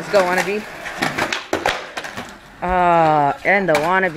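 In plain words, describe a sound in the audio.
Skateboard wheels roll over concrete.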